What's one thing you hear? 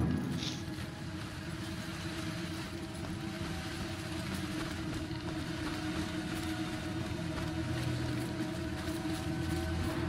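Footsteps tread on cobblestones.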